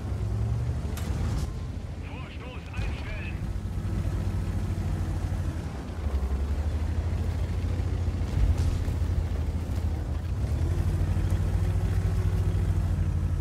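A cannon shell explodes with a sharp boom.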